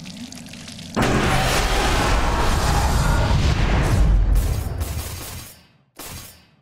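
A deep rumbling power-up effect swells suddenly and slowly fades.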